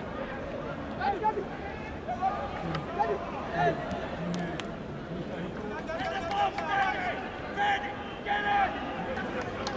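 Football players shout to each other across an open pitch.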